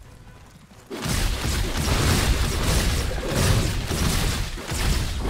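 Magic spells crackle and boom in a fierce fight.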